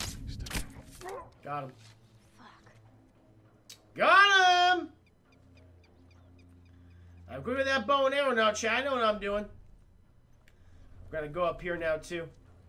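A young man talks into a close microphone with animation.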